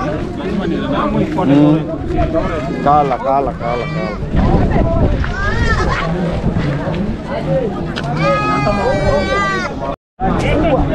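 Goats bleat nearby.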